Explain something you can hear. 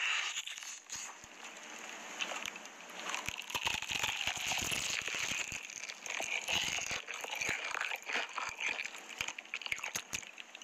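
A woman chews food with loud, wet crunches close to a microphone.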